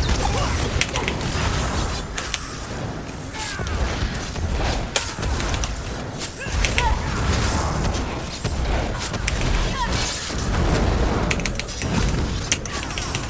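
Magic spells crackle and burst in quick succession.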